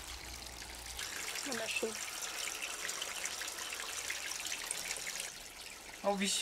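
Water trickles softly over stones.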